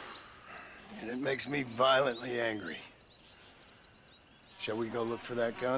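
A man speaks calmly in a low, gruff voice, close by.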